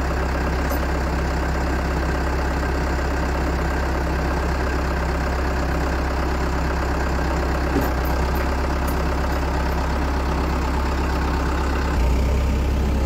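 An engine idles nearby with a steady low rumble.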